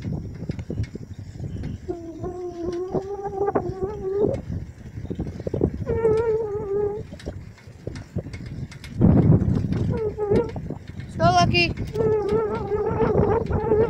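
Small wheels rumble and rattle over rough, cracked pavement.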